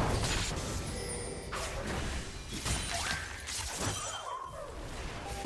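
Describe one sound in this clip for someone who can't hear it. Magic spell effects whoosh and crackle in a fast game fight.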